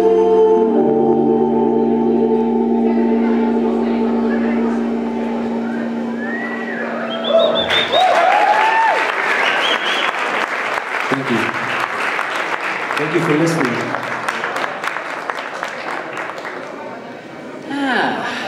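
A band plays live music loudly on stage.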